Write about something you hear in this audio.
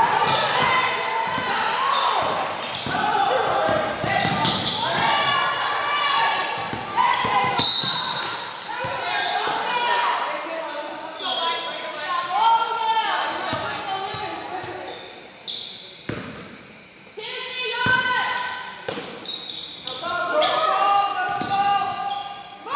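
Young women shout and call out to each other across an echoing gym.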